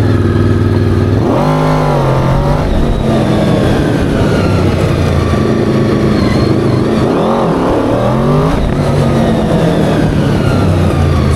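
A small engine buzzes loudly close by, revving up and down.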